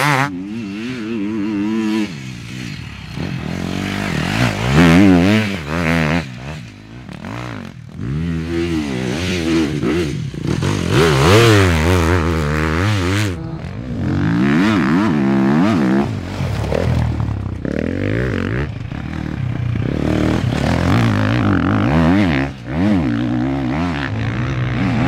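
Dirt bike engines rev and whine loudly, rising and falling as the riders accelerate.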